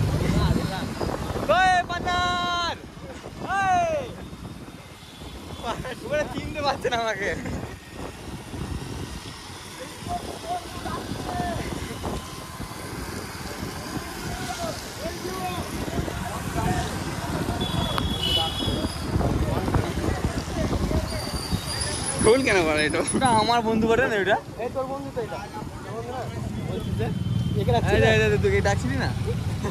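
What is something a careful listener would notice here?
Motorbike and scooter engines hum and rumble nearby.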